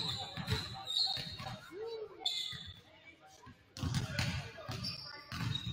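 A basketball bounces on a wooden court with echoing thuds.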